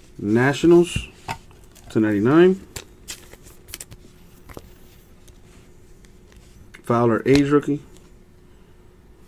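Stiff trading cards flick and rustle as they are handled close by.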